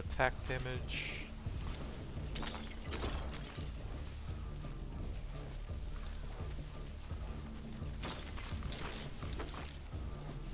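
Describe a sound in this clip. Blades swish and slash in quick bursts.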